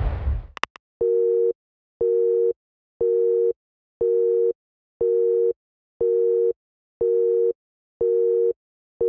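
A phone beeps in short, even pulses.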